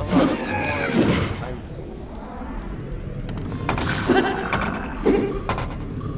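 Weapons clash and thud in a fast flurry of hits.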